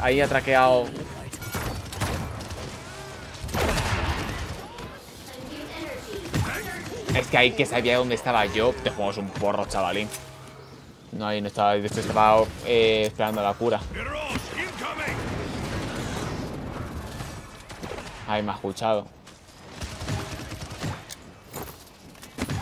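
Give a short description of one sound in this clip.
Video game gunfire crackles in quick bursts.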